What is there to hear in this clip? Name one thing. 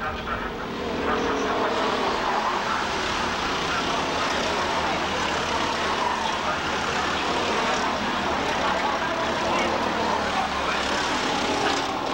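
A small kart engine sputters and revs.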